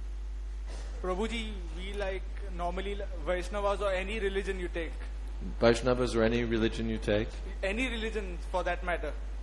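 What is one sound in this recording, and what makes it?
A middle-aged man speaks calmly into a microphone, heard through a loudspeaker.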